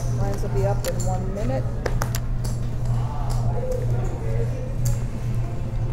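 Poker chips click and clatter against each other.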